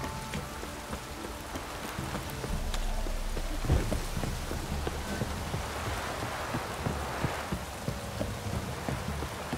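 Sword blows strike with sharp thuds.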